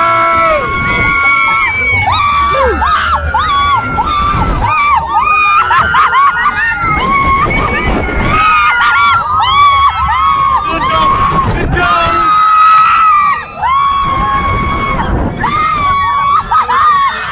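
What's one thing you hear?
Riders scream loudly and repeatedly, close by.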